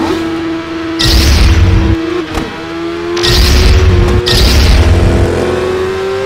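Motorcycles roar past close by.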